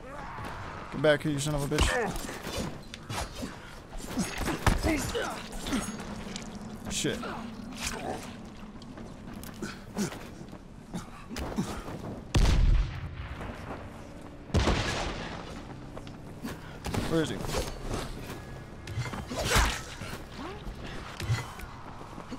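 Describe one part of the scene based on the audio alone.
A blade swishes and strikes with heavy thuds.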